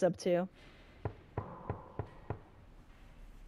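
Knuckles knock several times on a wooden door.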